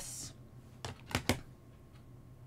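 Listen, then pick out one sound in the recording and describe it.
A plastic stamp block knocks softly on paper over a table.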